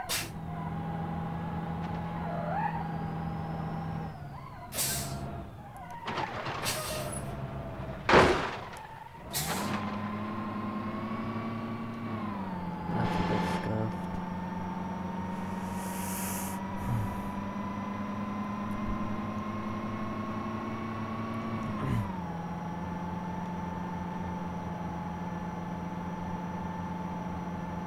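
A truck engine hums steadily and changes pitch as gears shift.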